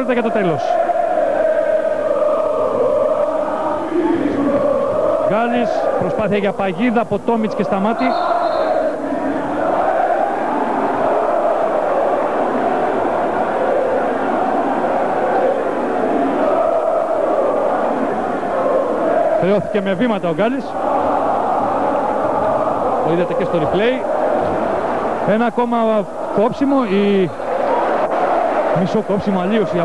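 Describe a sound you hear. A large crowd roars and chants throughout in an echoing hall.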